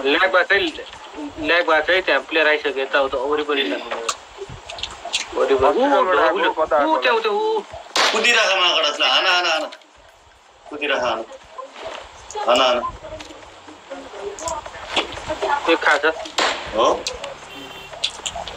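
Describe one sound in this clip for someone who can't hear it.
A young man talks with animation into a microphone, close by.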